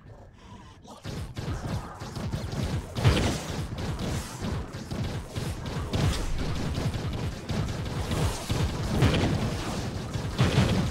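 Game spells and blows crash and boom in rapid bursts.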